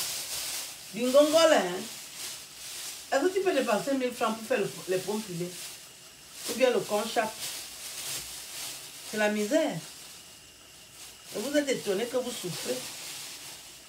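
A woman speaks calmly close by, in short bursts.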